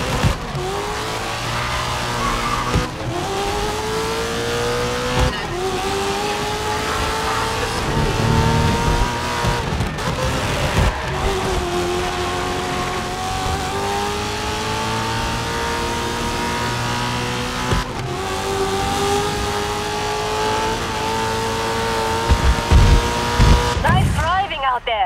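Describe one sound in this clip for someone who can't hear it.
A racing car engine roars at high speed, its pitch climbing with each gear and dropping at each shift.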